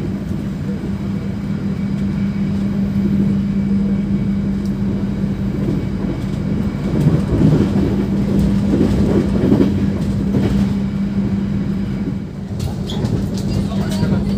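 A train rumbles steadily along the tracks with a low hum.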